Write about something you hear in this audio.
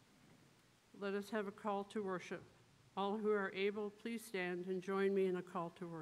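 A choir sings together in a large, echoing hall.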